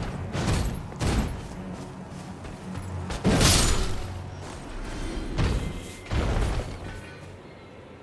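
Swords clash and slash in heavy blows.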